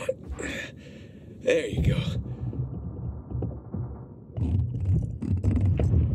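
Air bubbles gurgle from a diver's breathing gear.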